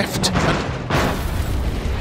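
A car crashes hard into something with a loud bang.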